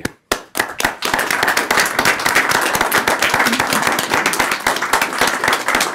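A group of people applauds.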